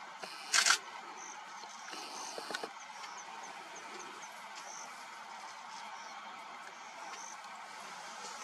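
Lion cubs rustle through grass as they walk.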